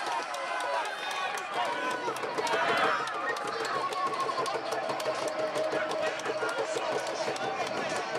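Young men shout in celebration.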